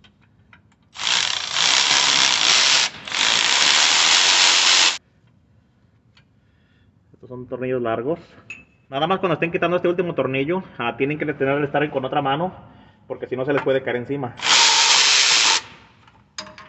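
A pneumatic ratchet whirs loudly in short bursts.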